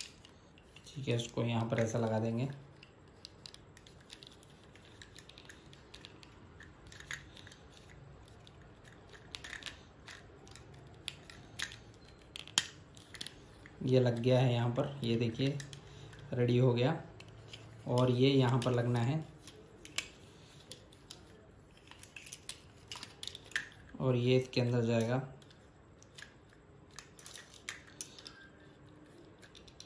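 Plastic parts click and rattle while being handled.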